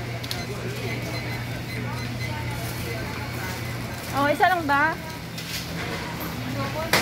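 Shoppers murmur faintly in the background.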